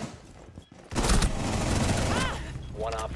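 A rifle fires several quick shots at close range.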